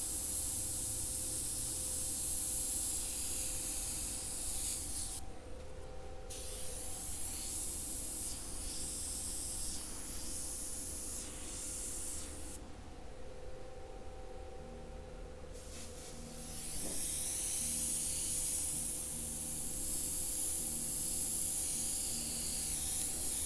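An airbrush hisses in short and long bursts.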